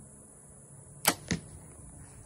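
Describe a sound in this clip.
A bowstring snaps as an arrow is released.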